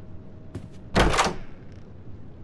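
A door bangs loudly once.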